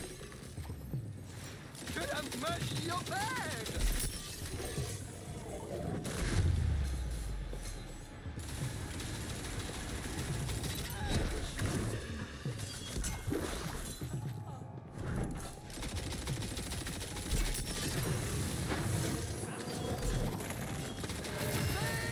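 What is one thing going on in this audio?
Gunfire bursts rapidly in a game.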